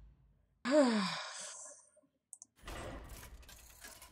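A game button clicks.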